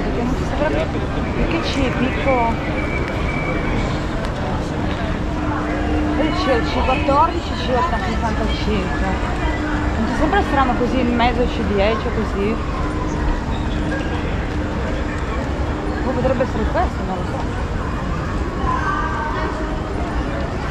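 Suitcase wheels roll over a hard floor.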